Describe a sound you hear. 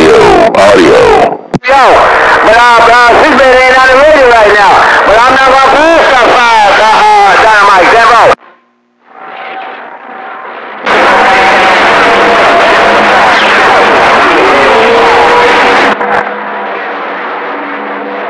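A shortwave radio hisses loudly with static.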